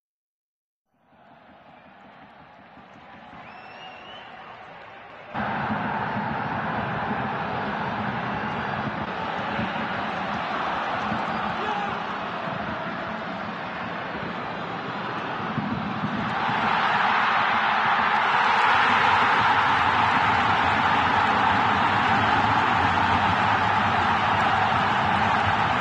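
A large stadium crowd roars and swells louder.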